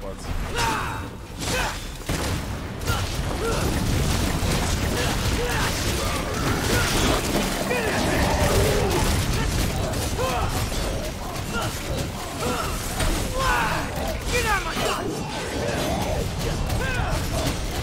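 A monster shrieks and squeals.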